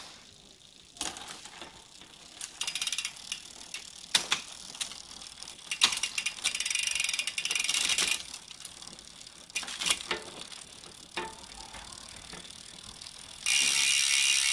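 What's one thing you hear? A bicycle chain clicks and rattles as the crank is turned by hand.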